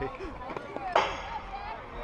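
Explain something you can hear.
A metal bat cracks against a baseball.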